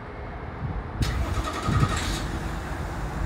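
A truck engine starts with a loud roar.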